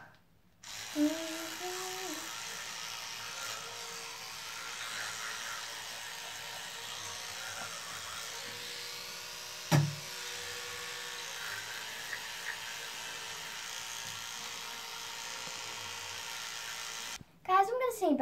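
An electric toothbrush buzzes steadily close by.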